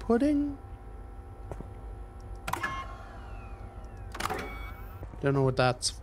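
A switch clicks.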